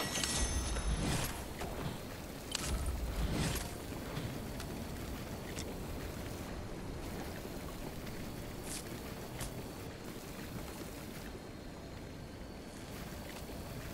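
Electric energy crackles and fizzes close by.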